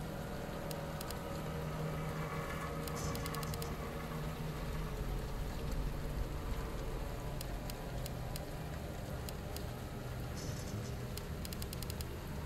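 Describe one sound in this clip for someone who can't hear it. Short electronic clicks tick as a menu list scrolls.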